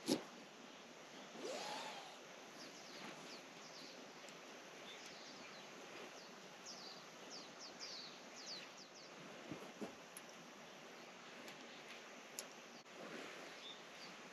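Tent fabric rustles and flaps.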